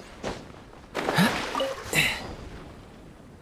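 Water splashes loudly as a boat drops into the sea.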